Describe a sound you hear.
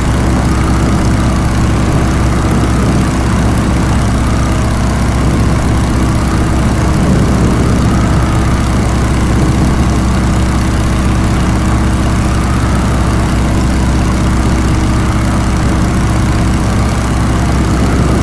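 A propeller engine drones loudly and steadily.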